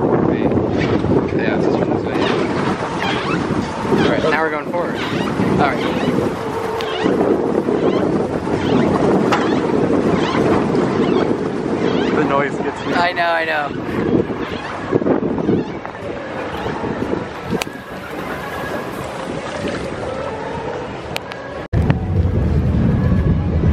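Water splashes and churns close by as a boat moves along.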